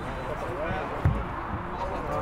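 A football is kicked with a thump.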